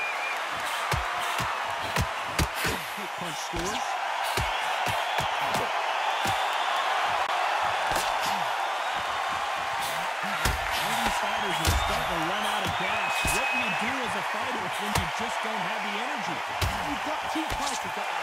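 A crowd cheers and murmurs steadily throughout.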